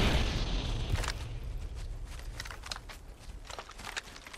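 Footsteps crunch quickly on grass.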